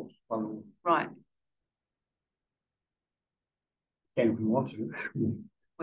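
A man speaks calmly and close by, pausing between phrases.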